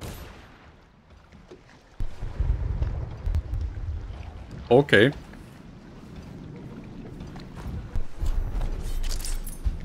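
Water laps and splashes.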